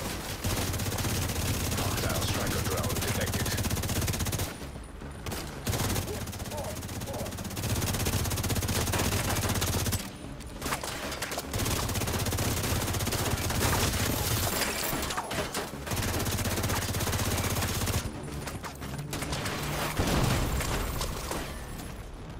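Rapid rifle fire rattles in bursts.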